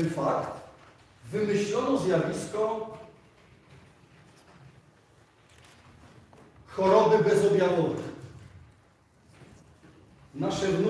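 A man speaks into a microphone in a large echoing hall, with pauses.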